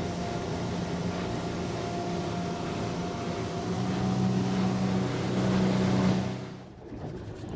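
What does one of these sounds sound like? A motorboat's engine drones at speed.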